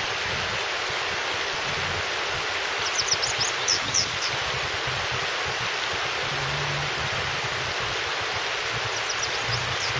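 Shallow river water rushes and babbles steadily over rocks outdoors.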